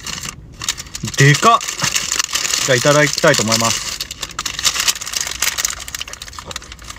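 Paper wrapping crinkles and rustles.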